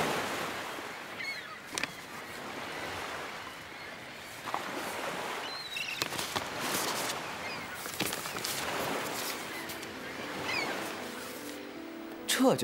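Paper crinkles and rustles in a man's hands.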